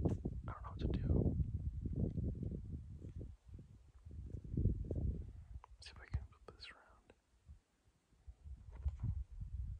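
A young man speaks calmly and close to the microphone.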